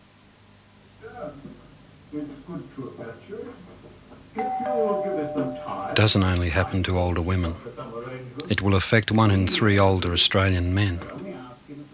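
An elderly man speaks slowly and quietly nearby.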